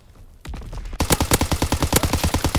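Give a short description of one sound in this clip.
A submachine gun fires rapid bursts at close range.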